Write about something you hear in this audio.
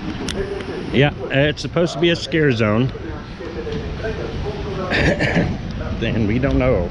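A middle-aged man talks animatedly, close to the microphone.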